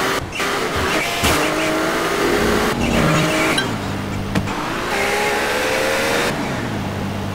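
A car engine hums and revs as a taxi drives.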